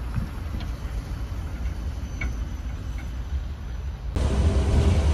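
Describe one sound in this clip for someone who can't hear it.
A tram rolls past along snowy rails outdoors.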